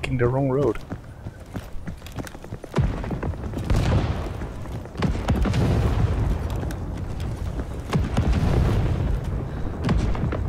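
Footsteps tread steadily on pavement.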